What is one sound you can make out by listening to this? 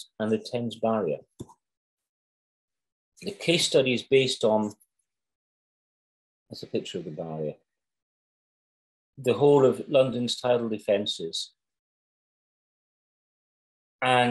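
An older man speaks calmly over an online call, with pauses between phrases.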